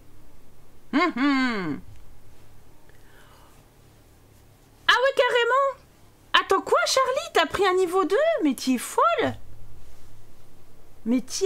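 A young woman talks animatedly into a close microphone.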